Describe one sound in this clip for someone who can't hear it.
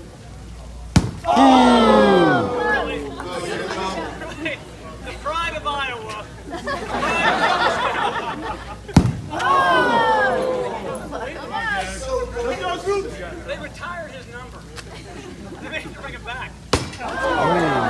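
A thrown ball knocks against a dunk tank target.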